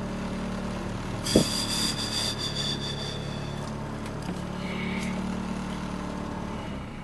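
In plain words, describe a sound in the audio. A car engine idles with a low steady hum.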